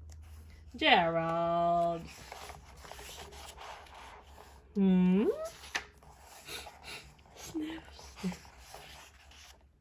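A book page turns with a soft paper rustle.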